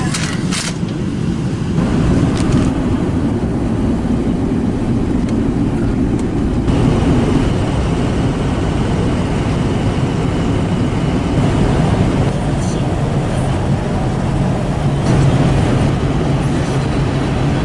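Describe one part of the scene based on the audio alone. A car engine hums steadily with road noise inside the cabin.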